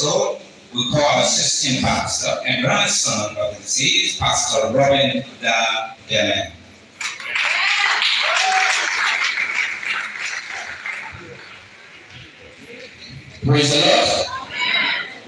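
A man speaks with animation through a microphone and loudspeakers in an echoing hall.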